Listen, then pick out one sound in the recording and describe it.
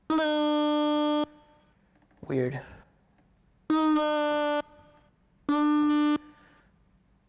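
A synthesizer plays short, steady held notes.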